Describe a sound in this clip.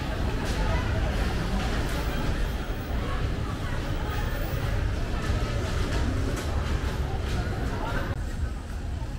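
Bumper cars hum and bump around a rink.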